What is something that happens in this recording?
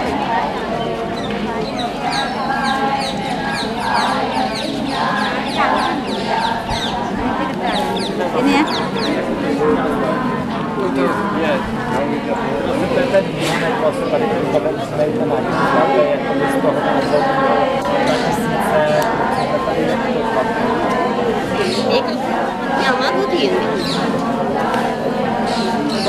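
A crowd of men and women murmurs and chatters nearby outdoors.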